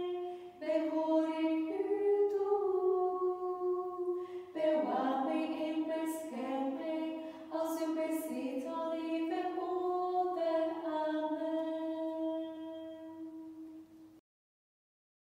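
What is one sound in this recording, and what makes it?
Young women sing a slow prayer together, close by.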